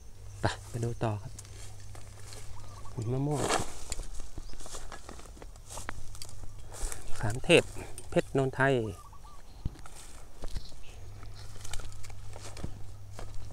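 Footsteps crunch through dry cut grass.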